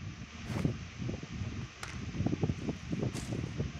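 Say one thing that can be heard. Footsteps thud quickly on dirt and grass.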